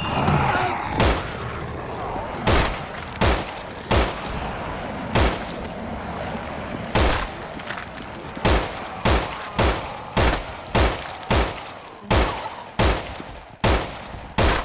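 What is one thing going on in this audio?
A rifle fires repeated loud shots.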